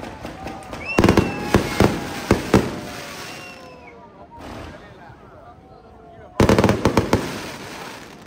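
Fireworks bang loudly overhead.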